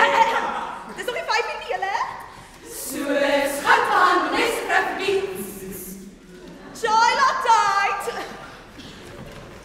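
A choir of young women sings loudly and energetically.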